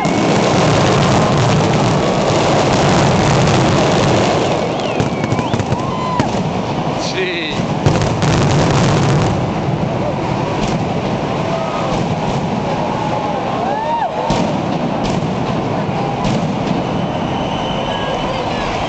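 Firecrackers crackle and bang in rapid bursts.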